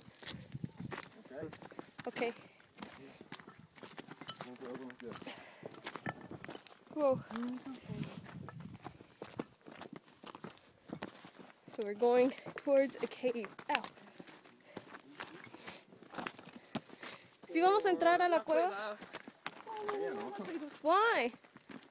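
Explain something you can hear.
Footsteps crunch on loose stones and gravel.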